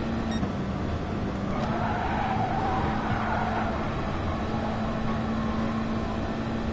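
A racing car engine roars at high revs through the game.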